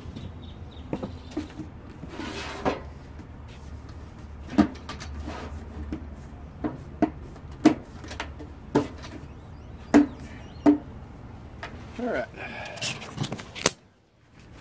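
Metal parts knock and clatter sharply.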